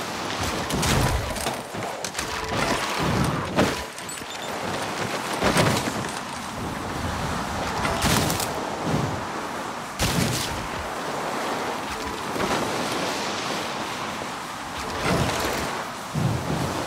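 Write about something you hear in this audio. Skis hiss and scrape steadily over snow.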